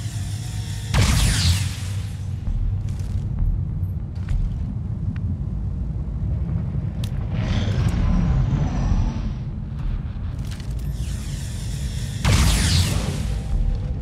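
A laser gun fires sharp, crackling shots.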